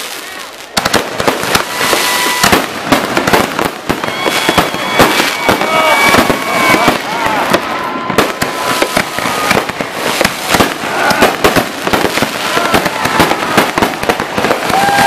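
Fireworks burst with rapid loud bangs and crackles.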